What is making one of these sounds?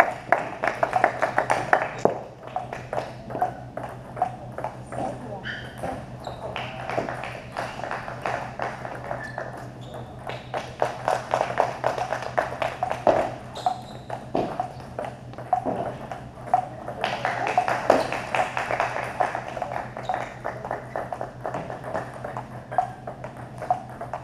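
Table tennis balls click sharply against paddles and a table in quick rallies, echoing in a large hall.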